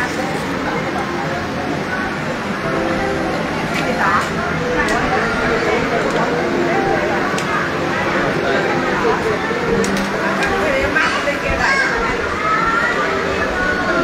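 A crowd of men and women chatter all around in a busy hall.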